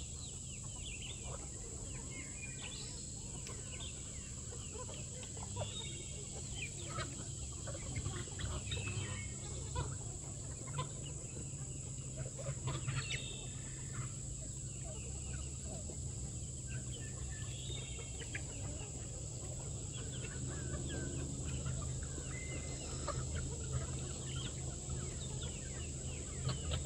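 A flock of chickens clucks and chatters outdoors.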